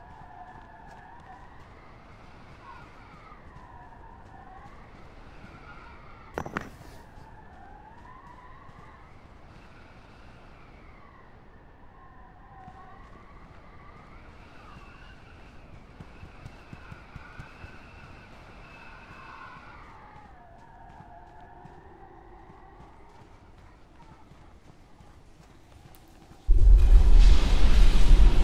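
Footsteps run quickly over rough, stony ground.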